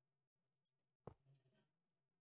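A block clicks into place with a soft thud.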